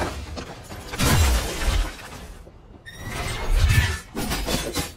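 Deep booming impacts thud.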